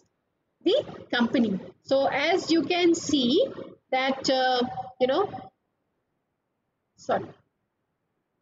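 A woman speaks calmly through a microphone, as if on an online call.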